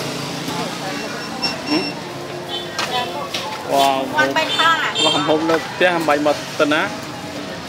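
A metal ladle clinks against pots and a bowl.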